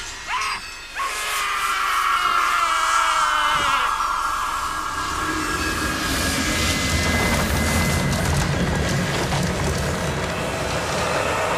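Electric energy crackles and hums loudly.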